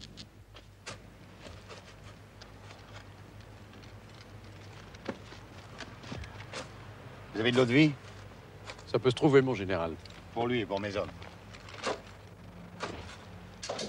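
A shovel digs into soil.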